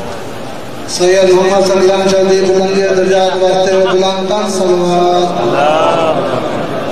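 A man's voice sings loudly through a loudspeaker.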